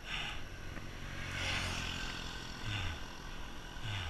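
A motorcycle engine roars past and fades.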